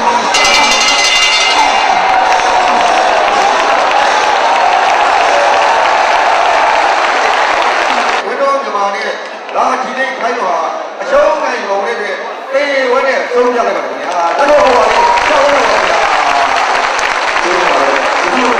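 A large crowd cheers and roars loudly.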